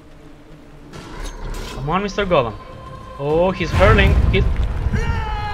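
Swords clash and ring.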